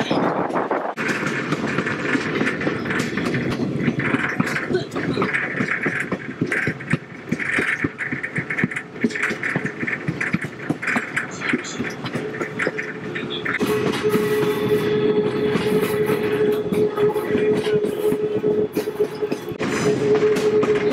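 Train wheels clatter rhythmically over rail joints close by.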